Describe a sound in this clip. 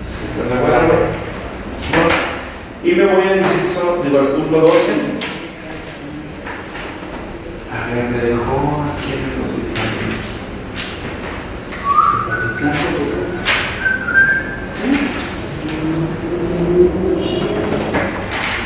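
A man speaks calmly nearby in a small room.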